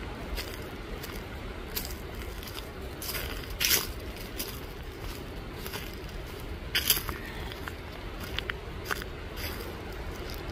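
Footsteps crunch on dry leaves along a trail.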